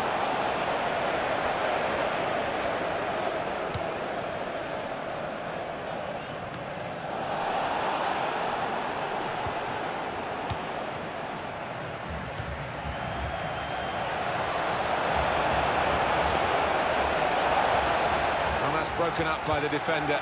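A large stadium crowd roars and chants steadily, swelling and easing.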